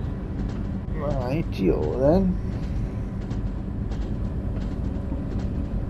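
A train engine rumbles steadily.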